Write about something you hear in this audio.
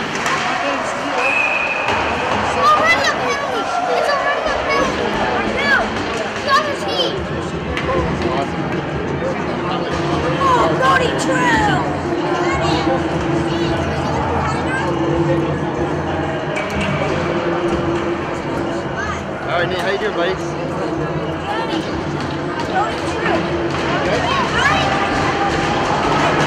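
Skates scrape and hiss across the ice in an echoing rink.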